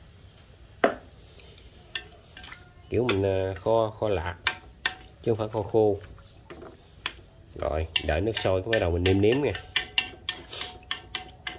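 A broth simmers and bubbles gently.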